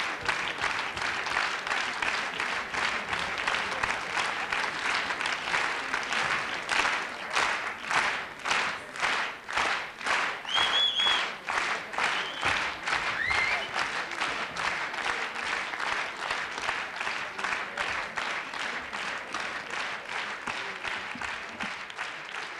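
An audience claps in steady rhythmic unison in a large hall.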